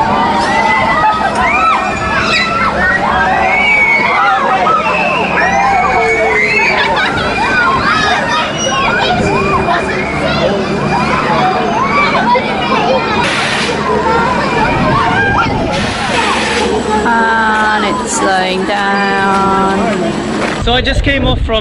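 Riders on a swing ride shout and squeal excitedly.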